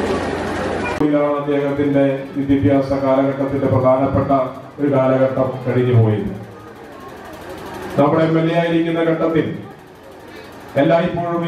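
A man speaks steadily into a microphone over a loudspeaker.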